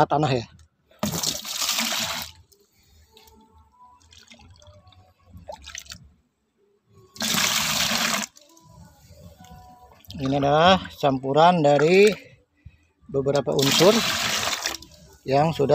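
Water pours and splashes into a bucket.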